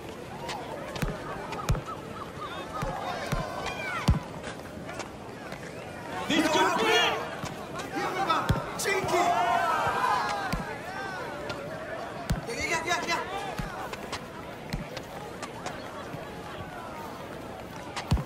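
A ball is kicked with sharp thuds, again and again.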